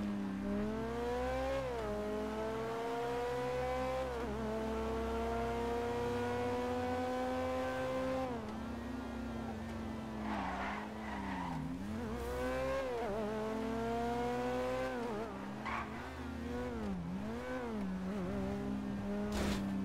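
A sports car engine revs and roars, rising in pitch and dropping as it shifts gears.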